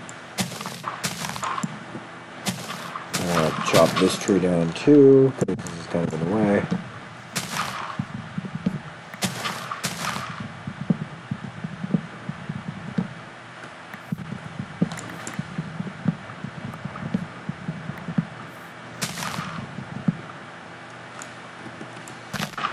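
Leaves and wood are broken with quick crunching taps.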